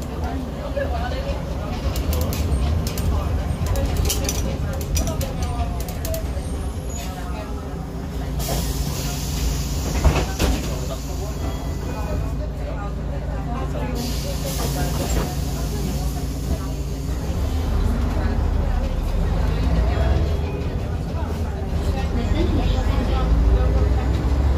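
A diesel city bus engine drones and rattles, heard from inside as the bus pulls away and accelerates.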